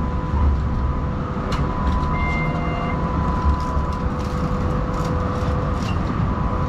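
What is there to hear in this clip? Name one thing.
Traffic hums steadily on a city street outdoors.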